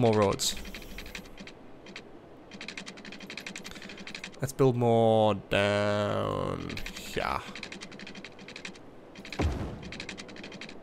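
A young man speaks with animation close to a microphone, raising his voice at times.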